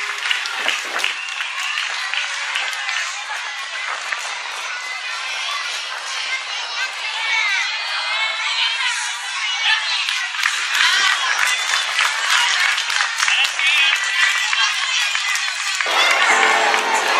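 A choir of young girls sings outdoors.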